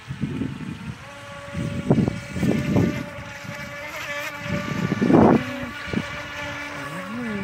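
A small motorboat buzzes steadily as it speeds across the water.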